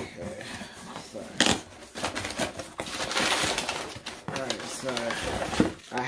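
Cardboard flaps rustle and crinkle.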